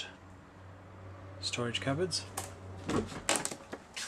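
A cabinet door clicks open.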